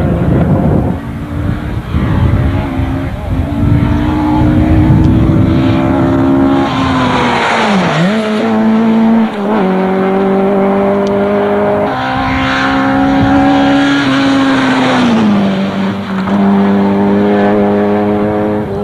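A rally car engine roars at full throttle.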